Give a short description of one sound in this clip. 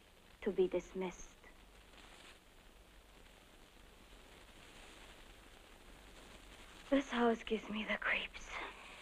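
A young woman speaks calmly nearby, in short bursts.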